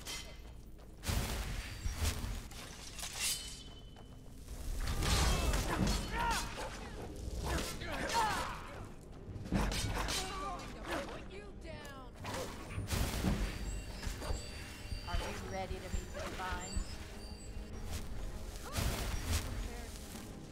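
A sword clashes and slashes.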